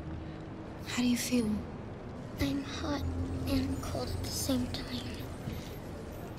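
A girl speaks softly and shakily nearby.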